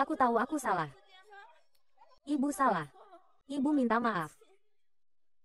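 A young woman screams loudly in distress.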